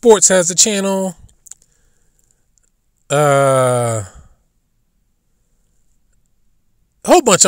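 A man speaks loudly with animation, close to a microphone.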